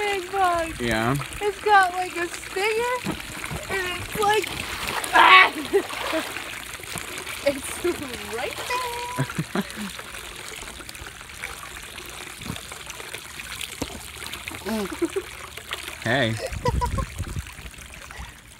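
Water splashes and laps in a pool.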